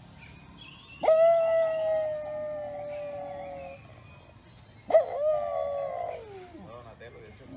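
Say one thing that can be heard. A small puppy howls in high, drawn-out cries.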